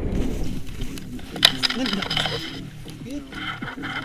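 Boots crunch and slide on snow as a paraglider lands.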